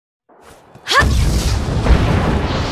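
A loud blast bursts with a deep roar.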